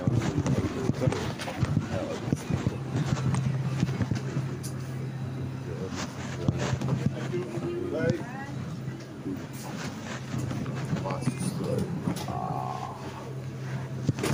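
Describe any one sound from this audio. Refrigerators hum steadily nearby.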